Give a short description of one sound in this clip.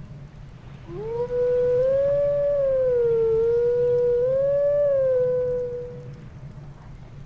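A wolf howls a long, wavering tune that rises and falls in pitch.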